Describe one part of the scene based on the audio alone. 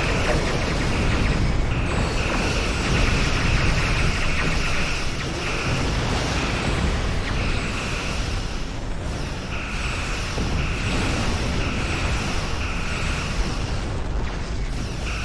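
A deep rumbling roar runs steadily underneath.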